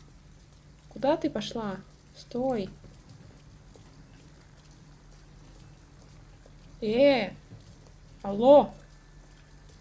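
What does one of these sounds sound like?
A young woman speaks in short bursts close to a microphone.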